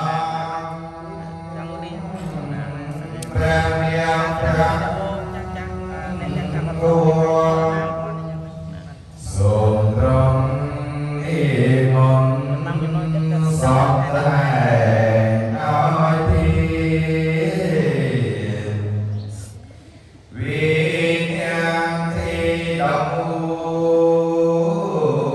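A young man sings slowly into a microphone, heard through a loudspeaker.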